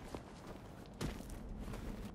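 A heavy thud sounds as someone lands on a stone floor.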